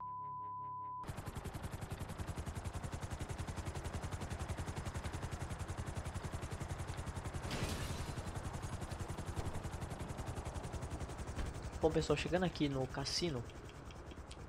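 A helicopter's rotor chops steadily up close.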